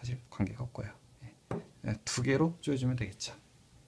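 A small metal box clinks as it is set down on a hard surface.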